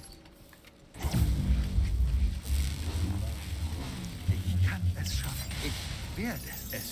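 Game sound effects whoosh and zap with electric crackles.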